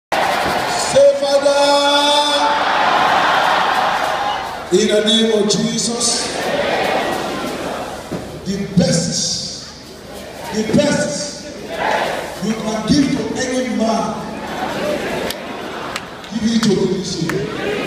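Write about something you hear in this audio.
A large crowd sings together loudly in a big echoing hall.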